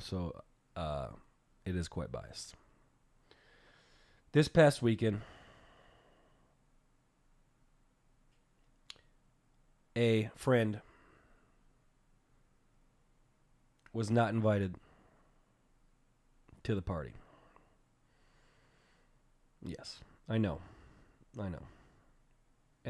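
A man speaks in short bursts close to a microphone, with long pauses between.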